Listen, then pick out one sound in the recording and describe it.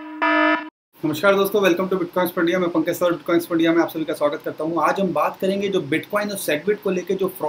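A man speaks with animation close to a microphone.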